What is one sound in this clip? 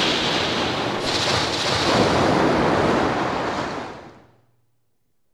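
A creature bursts out with a loud, rushing splatter.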